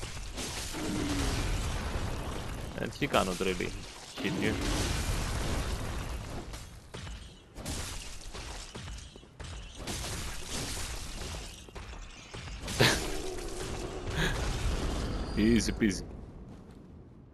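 Blades slash and strike flesh.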